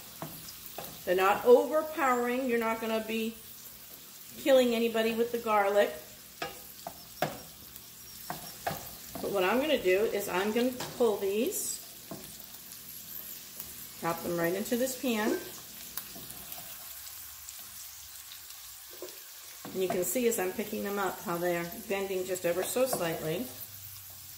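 A wooden spatula scrapes and taps in a frying pan.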